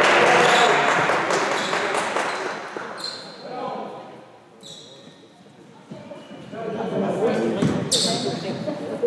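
Spectators chatter and cheer in a large echoing gym.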